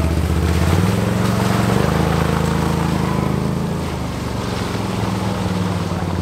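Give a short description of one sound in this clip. Tyres splash through muddy water.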